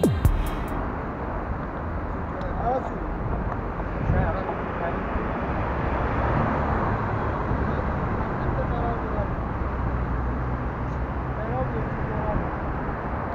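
A man talks in a conversation outdoors.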